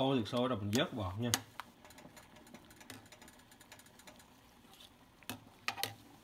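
A metal ladle clinks against the side of a pot.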